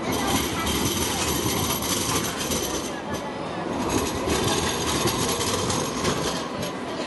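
A tram rolls past close by, rumbling on its rails.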